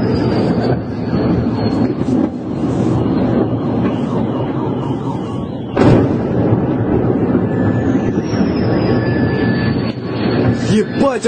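A jet aircraft screams overhead as it dives.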